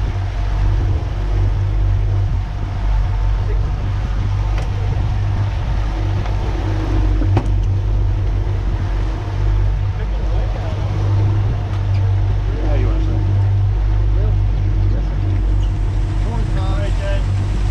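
Water rushes and splashes behind a boat.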